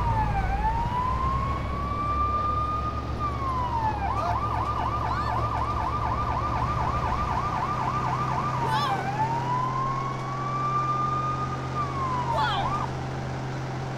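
A siren wails up and down.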